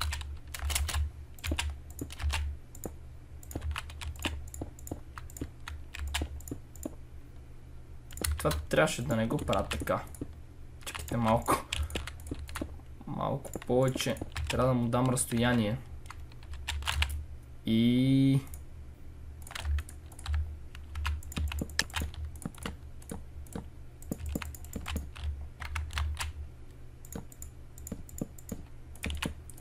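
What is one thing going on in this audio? Game blocks click and crunch as they are placed and broken.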